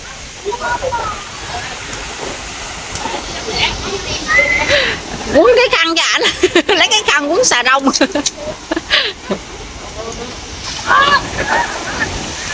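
Children shout and squeal while playing in the sea.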